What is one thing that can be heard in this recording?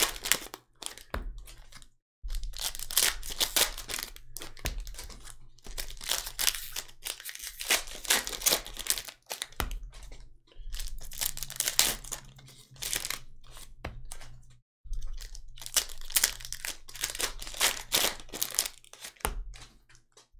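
Cards slap and shuffle against each other.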